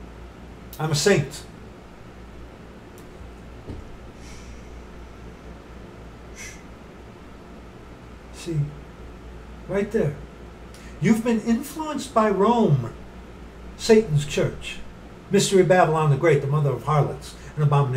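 A middle-aged man speaks with animation close to the microphone, in bursts with pauses.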